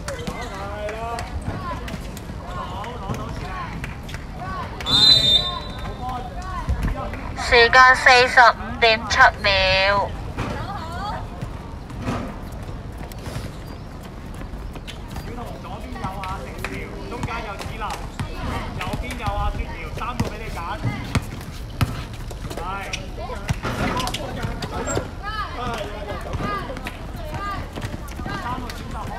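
Young girls shout and call out to each other outdoors.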